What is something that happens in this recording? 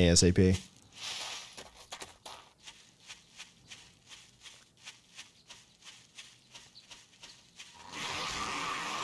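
Footsteps swish through grass at a steady pace.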